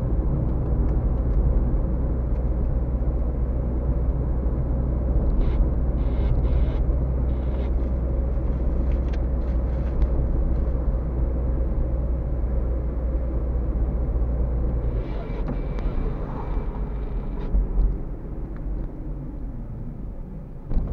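Tyres roll on asphalt with a low rumble.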